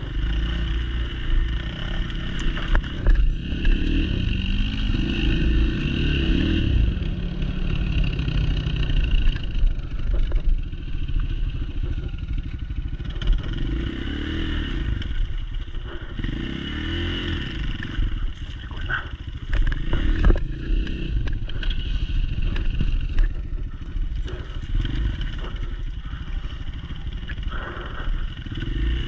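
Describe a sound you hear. A second dirt bike engine buzzes a short way ahead.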